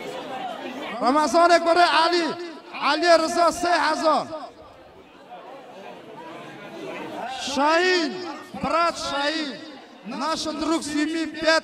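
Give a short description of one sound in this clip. A man sings loudly into a microphone through loudspeakers, in drawn-out wavering phrases.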